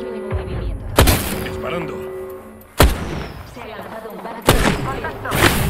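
Gunshots crack sharply a few times.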